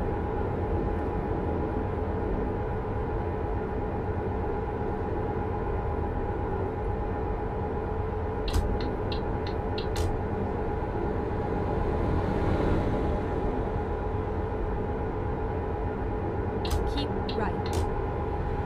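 A truck engine hums steadily while driving.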